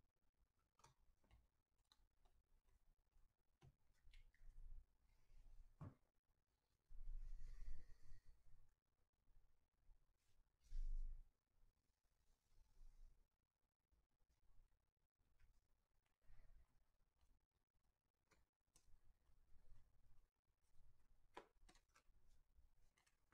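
Trading cards flick and rustle as a hand shuffles through a stack.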